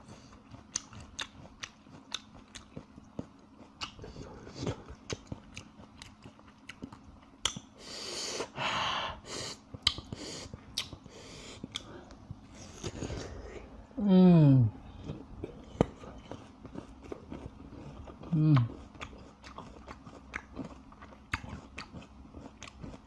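A young man chews and smacks his lips noisily, close to the microphone.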